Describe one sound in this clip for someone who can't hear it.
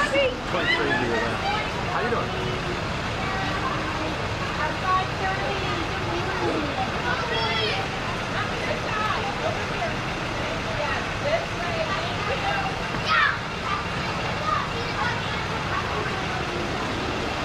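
A bus engine idles outdoors.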